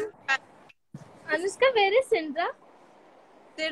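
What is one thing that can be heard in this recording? A second young woman talks and laughs over an online call.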